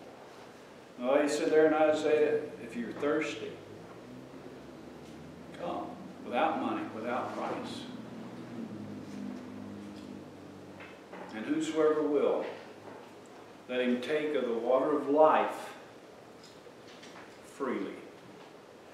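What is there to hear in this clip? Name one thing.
An elderly man speaks calmly and with pauses, a little way off in an echoing room.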